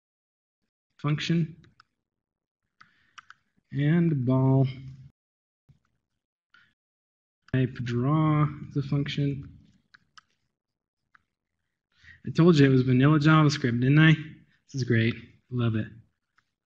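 A man speaks calmly into a microphone, in pauses.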